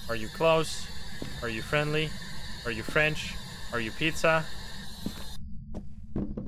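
A handheld radio hisses with static while being tuned.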